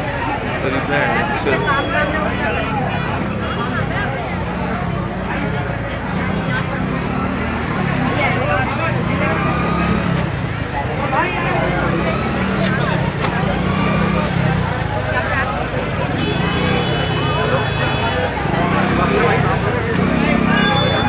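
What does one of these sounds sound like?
A dense crowd of men and women chatters loudly all around outdoors.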